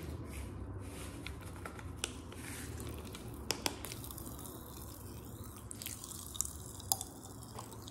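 A young woman chews candy with her mouth open.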